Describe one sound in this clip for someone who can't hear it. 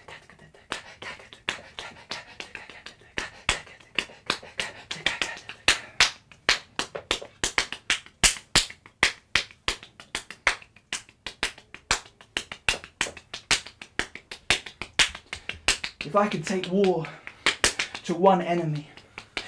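Hands clap or tap out a quick, steady rhythm.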